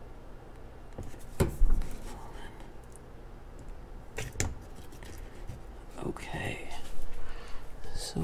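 Hands tap and rustle stiff plastic up close.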